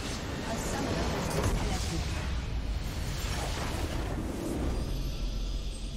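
A game structure explodes with a loud burst.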